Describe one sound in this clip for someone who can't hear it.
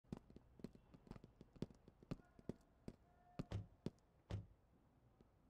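Footsteps tap on pavement at a steady walking pace.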